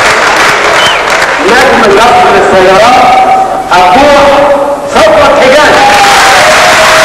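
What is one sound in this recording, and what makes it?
A man speaks through a microphone over a loudspeaker.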